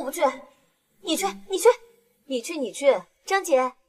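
A young woman answers nearby.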